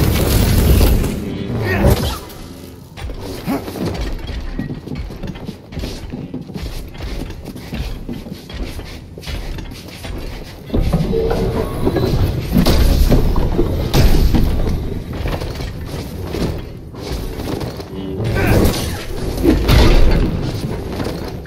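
A lightsaber hums and swings through the air.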